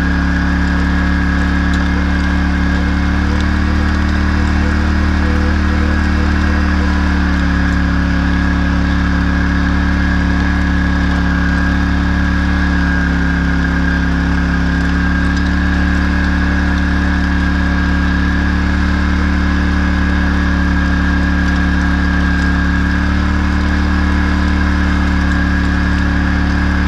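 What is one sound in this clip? A harrow's metal tines rattle and scrape through soil.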